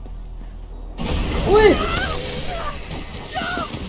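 A young woman grunts with effort.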